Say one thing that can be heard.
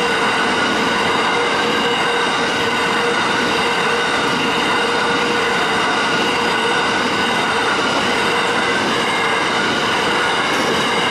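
Loaded coal wagons roll past on steel rails, wheels clattering and rumbling.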